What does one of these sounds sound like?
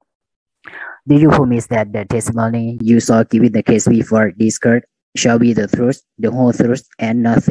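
A young man speaks an oath into a microphone over an online call.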